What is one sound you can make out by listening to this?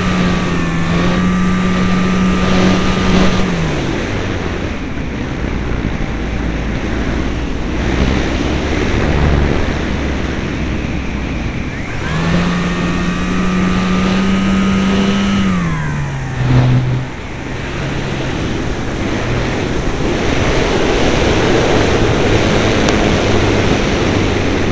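Wind rushes loudly past throughout.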